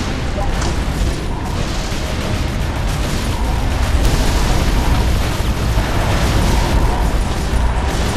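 Explosions rumble and boom.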